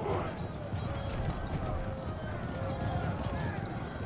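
Soldiers clash with weapons in a distant battle.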